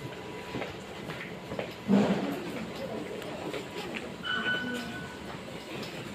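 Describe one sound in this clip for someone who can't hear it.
Footsteps walk across a hard floor in a large echoing hall.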